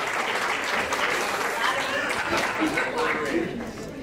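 Men and women laugh nearby.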